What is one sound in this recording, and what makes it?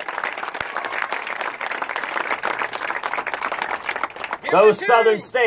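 A crowd applauds and cheers outdoors.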